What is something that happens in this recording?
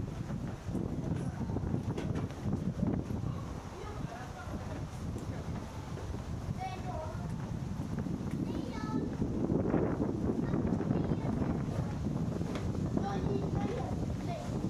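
Footsteps walk on wooden planks.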